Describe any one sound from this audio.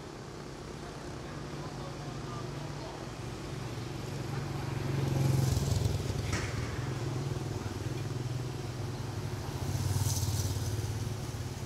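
Leaves rustle as a man handles potted plants.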